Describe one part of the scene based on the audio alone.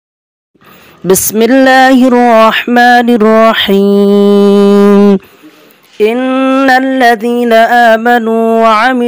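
A man chants a recitation through a microphone in a drawn-out, melodic voice.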